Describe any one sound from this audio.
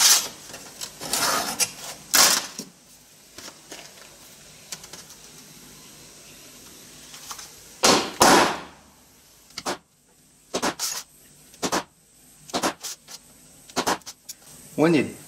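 Metal plates clatter and clank as they are set down on a metal bench.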